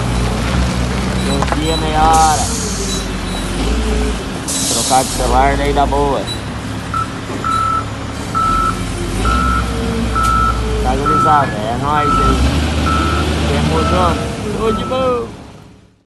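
A wheel loader's diesel engine rumbles and revs nearby.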